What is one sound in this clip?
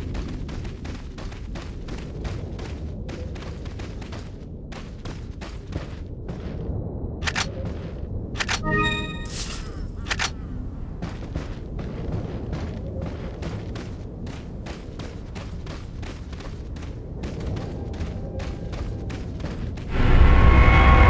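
Footsteps tread steadily on a wooden floor.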